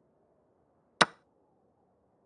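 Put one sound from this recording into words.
A single sharp click sounds as a chess piece is placed.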